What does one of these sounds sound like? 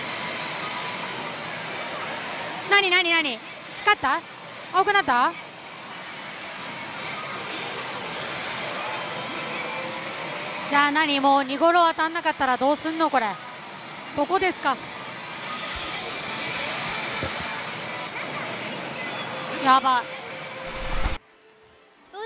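A slot machine plays busy electronic jingles.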